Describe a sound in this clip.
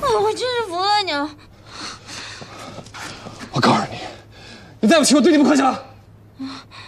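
A young man speaks firmly and close by.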